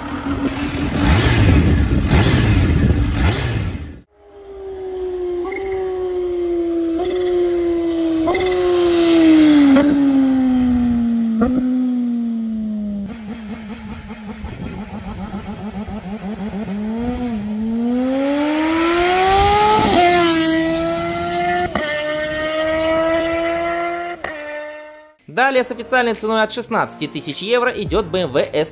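A motorcycle engine rumbles and revs up close.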